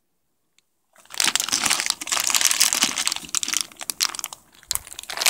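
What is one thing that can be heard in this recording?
Dry pasta rattles as it is poured into a pot.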